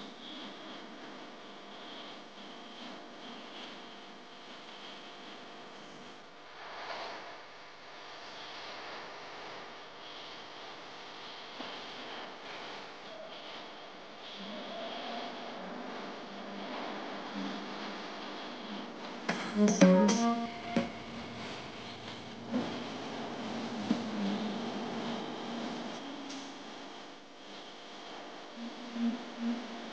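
Music with a steady beat plays loudly through loudspeakers.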